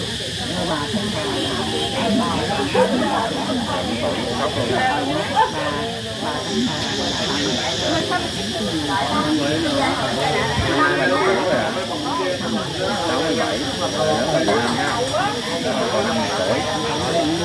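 A crowd of men and women chatters nearby, outdoors.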